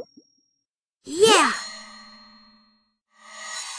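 A bright, sweeping game jingle rings out and fades.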